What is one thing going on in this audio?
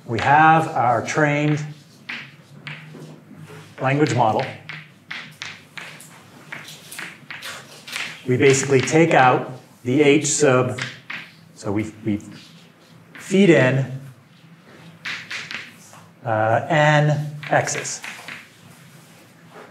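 A man speaks steadily in a room with a slight echo.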